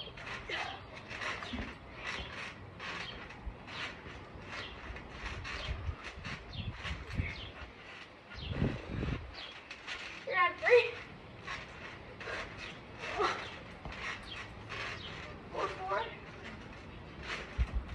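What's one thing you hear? A trampoline mat creaks and thumps as a boy bounces on it.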